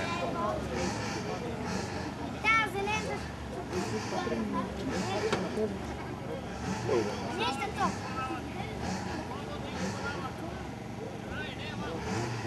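A small car engine idles close by.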